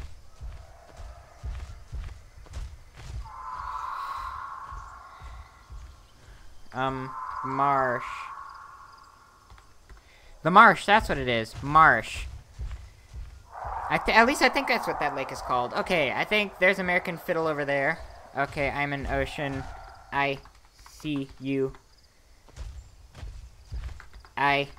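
A large creature thuds along with heavy footsteps.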